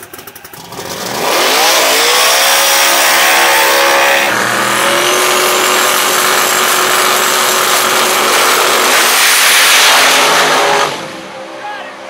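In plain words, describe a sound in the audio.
A drag car's engine roars loudly at full throttle.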